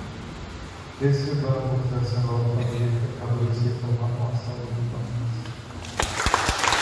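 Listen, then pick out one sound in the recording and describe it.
A man speaks through a microphone over loudspeakers in an echoing hall.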